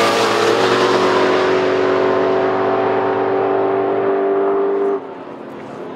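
Two drag racing cars roar away at full throttle.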